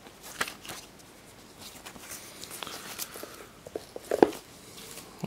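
Cardboard sleeves and paper rustle and slide as hands handle them.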